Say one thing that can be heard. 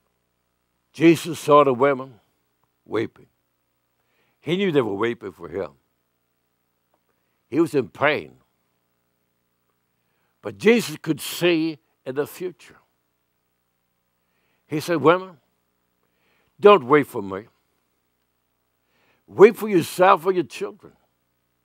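An elderly man preaches with emphasis through a microphone, in short bursts with pauses.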